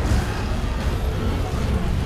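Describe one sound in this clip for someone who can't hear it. A fiery explosion booms and crackles.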